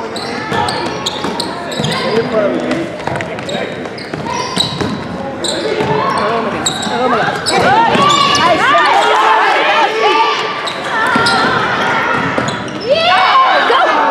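Young players call out to each other in a large echoing gym.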